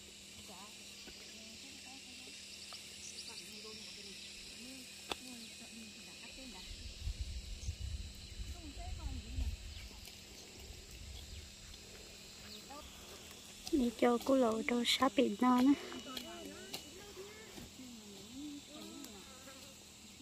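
Women chat casually nearby outdoors.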